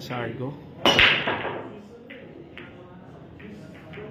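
Pool balls clack together and roll across the table.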